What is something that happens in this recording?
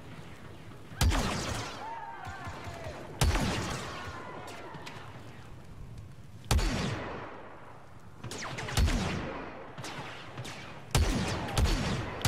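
Blaster shots crack with heavy booms that rumble away.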